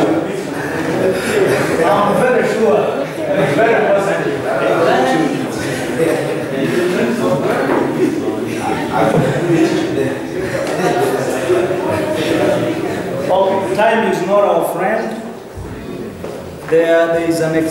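A man speaks steadily, lecturing in a slightly echoing room.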